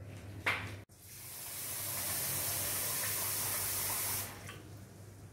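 Water pours from a tap into a bowl of rice.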